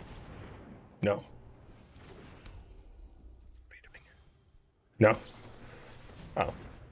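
Magical game sound effects whoosh and chime.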